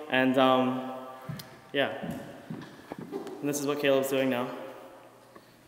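A young man talks with animation close to the microphone, in an echoing hall.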